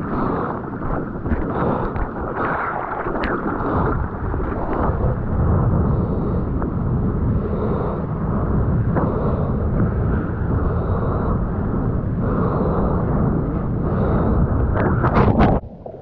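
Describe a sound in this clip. Sea water rushes and splashes past a surfboard close up.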